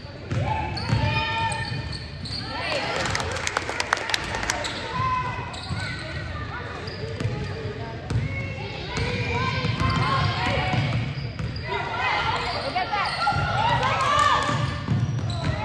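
Spectators cheer and call out in a large echoing gym.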